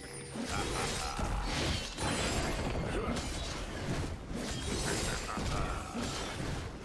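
Sword blows and magic blasts clash in a fast fight.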